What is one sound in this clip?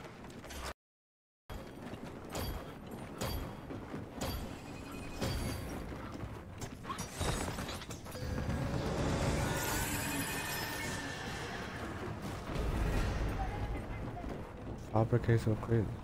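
Heavy boots thud on hard ground as an armoured soldier runs.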